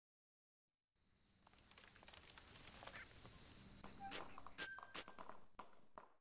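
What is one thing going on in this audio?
Video game sound effects play, with sharp bright hits.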